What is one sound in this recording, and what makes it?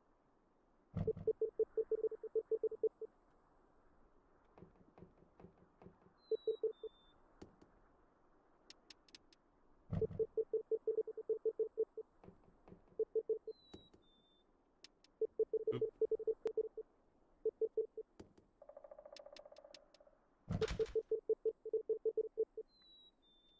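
Quick electronic blips sound in rapid bursts, like game text typing out.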